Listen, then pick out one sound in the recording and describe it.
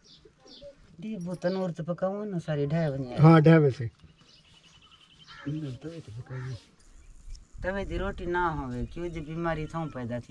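An elderly woman speaks calmly up close.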